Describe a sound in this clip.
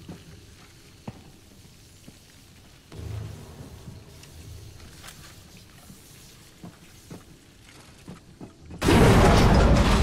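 Hands and feet clank on metal ladder rungs during a climb.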